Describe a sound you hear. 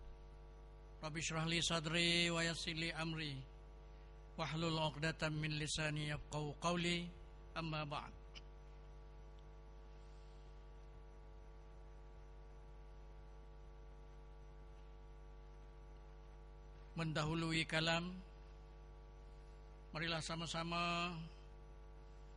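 An elderly man speaks calmly into a microphone in bursts with long pauses.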